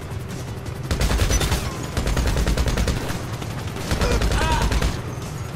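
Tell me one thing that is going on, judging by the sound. Rapid bursts of gunfire rattle close by.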